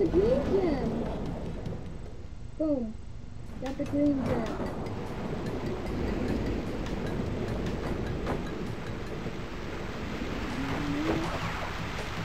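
Cartoonish springy sound effects boing as a game character jumps.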